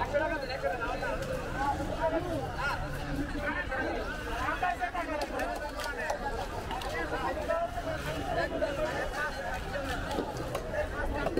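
Knives chop through fish with sharp knocks.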